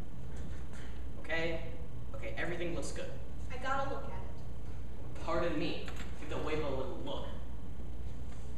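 A young person speaks in a large echoing room.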